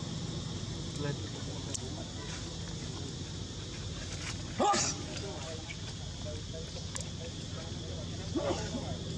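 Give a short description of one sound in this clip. A monkey's footsteps rustle dry leaves and scrape on rocks.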